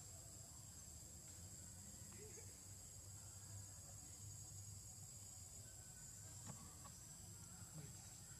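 Dry leaves rustle under small footsteps.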